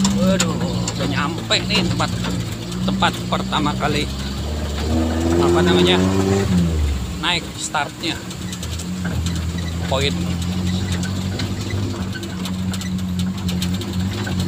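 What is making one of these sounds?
A man talks casually close to the microphone.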